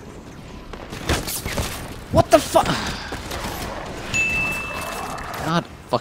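Gunfire cracks and bullets strike rock.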